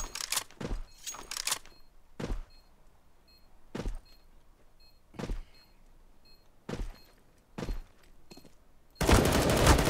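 Footsteps thud on hard ground at a steady pace.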